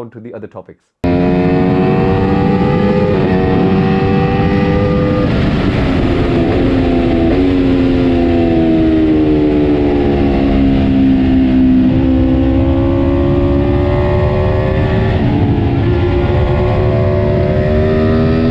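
A motorcycle engine roars and changes pitch as the bike speeds along a track.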